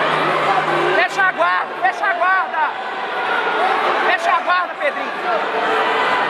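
People in a crowd shout loud, high-pitched cheers.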